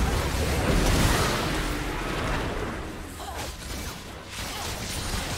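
Game spell effects whoosh and crackle loudly in a busy fight.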